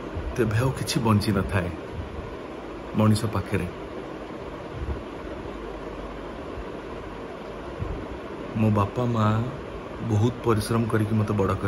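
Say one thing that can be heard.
A man speaks close up, with pauses, in a relaxed, amused voice.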